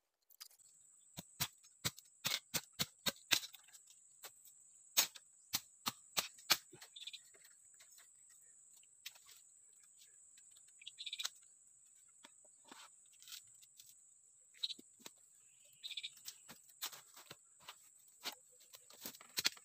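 A man chops at bamboo with sharp knocks.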